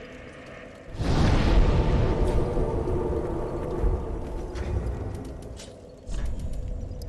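A deep rumbling roar bursts out and slowly fades.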